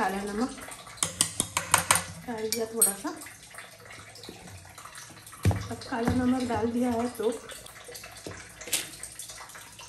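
A metal spoon clinks and scrapes against a metal pot.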